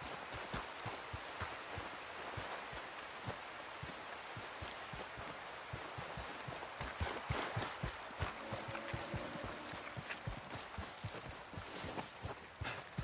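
Footsteps crunch quickly over wet ground.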